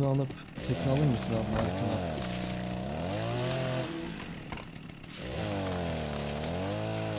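A hatchet chops into a tree trunk with dull knocks.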